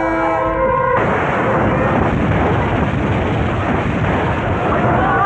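A huge explosion booms and roars.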